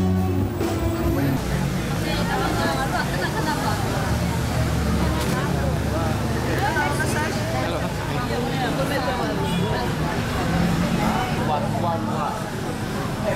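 Many people chatter around outdoors in a busy crowd.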